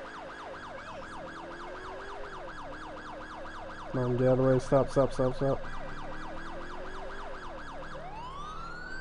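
A police car siren yelps in fast, rapid cycles.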